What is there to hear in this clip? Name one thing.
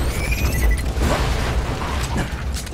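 An explosion bursts with a heavy boom.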